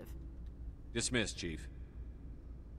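A man speaks briefly in a firm, calm voice.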